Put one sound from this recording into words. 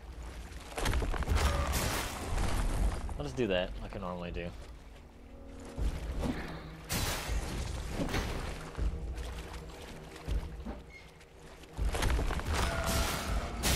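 Swords clash and heavy blows strike in combat.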